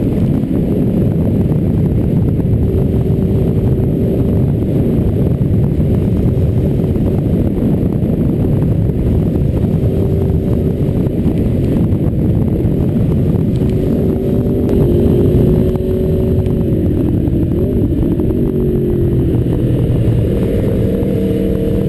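A motorcycle engine hums steadily, rising and falling in pitch.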